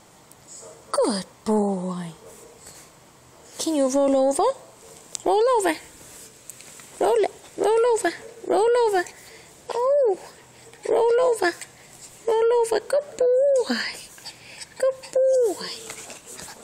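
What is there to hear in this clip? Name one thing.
A small puppy yaps and whines in short, high bursts close by.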